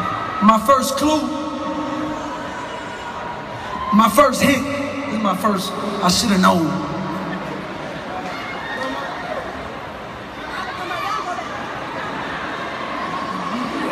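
A young man speaks loudly into a microphone over a loudspeaker in a large echoing hall.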